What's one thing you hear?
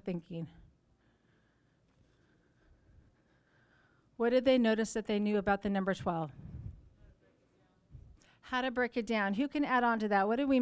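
A middle-aged woman speaks with animation through a microphone.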